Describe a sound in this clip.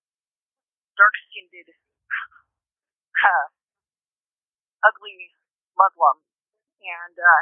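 A young woman speaks in short, clipped bursts.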